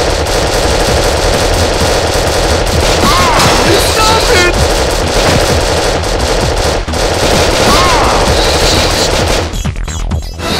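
Gunshots fire rapidly in bursts.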